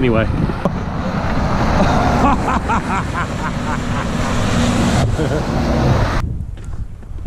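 Cars and a bus roar past close by on a road.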